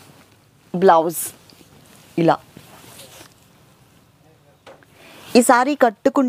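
Silky fabric rustles as it is unfolded.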